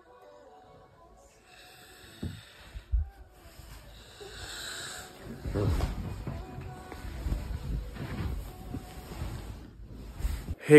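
A soft fleece blanket rustles and shuffles close by.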